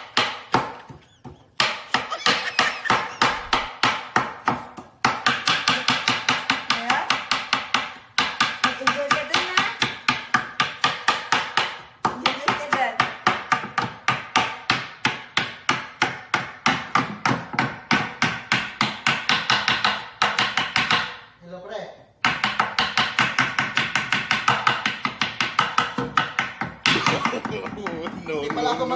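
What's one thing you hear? A knife chops rapidly on a wooden cutting board.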